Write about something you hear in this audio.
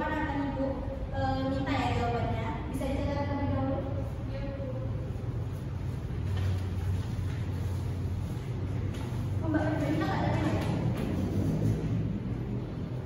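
A young woman speaks calmly to a group in a room with a slight echo.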